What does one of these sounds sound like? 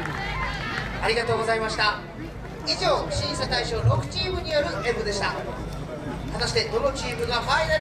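A group of young dancers shouts and chants in unison.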